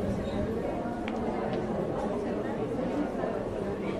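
A shopping cart rattles as it rolls across a hard floor.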